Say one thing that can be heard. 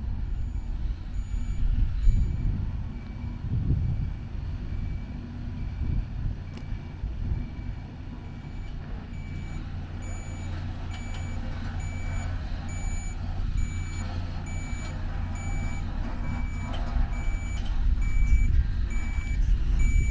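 Truck tyres crunch on a gravel track.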